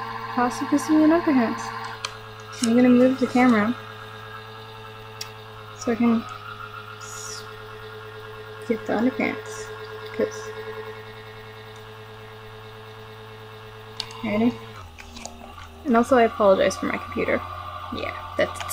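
A young woman talks casually, close to a microphone, with pauses.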